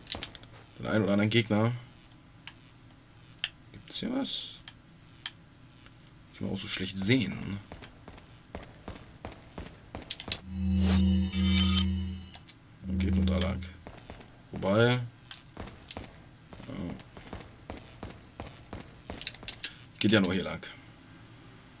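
A young man talks calmly in short bursts, close to a microphone.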